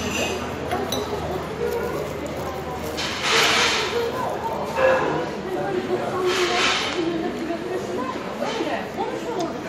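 A fork taps and scrapes against a plate.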